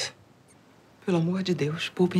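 An older woman speaks firmly, close by.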